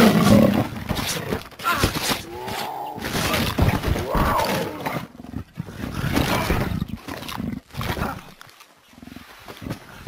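A big cat crunches and chews on flesh and bone.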